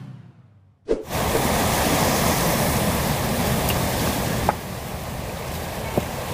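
Waves wash onto a rocky shore outdoors in wind.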